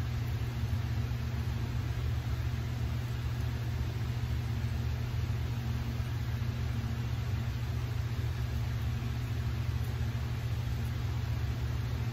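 An electric shaver buzzes steadily close by.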